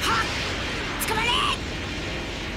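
A man shouts in alarm.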